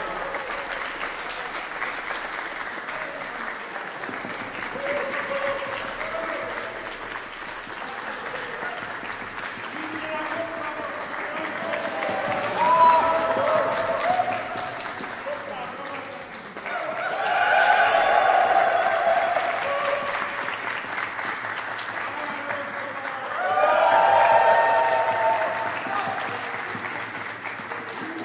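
A choir sings with a small orchestra in an echoing hall.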